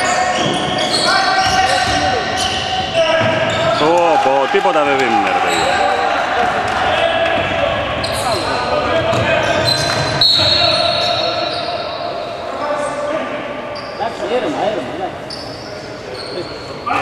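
Sneakers squeak sharply on a wooden court in a large echoing hall.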